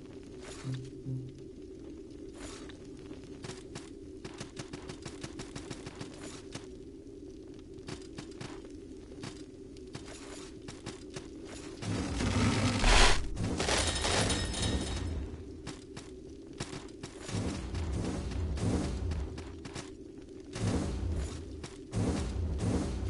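Quick footsteps tap on stone.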